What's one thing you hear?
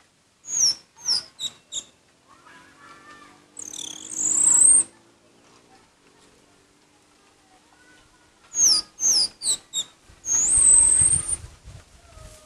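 A songbird sings loud, clear whistles in short bursts.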